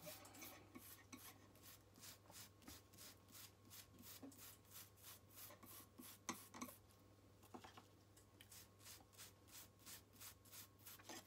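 A small hand tool clicks and scrapes against a thin wire, close by.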